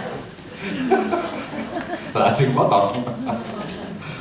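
A middle-aged man laughs into a microphone.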